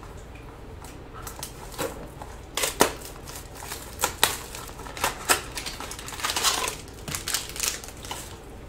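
Cardboard boxes rustle and tap as hands handle them.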